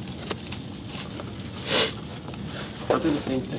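A blade scrapes and scores through cardboard.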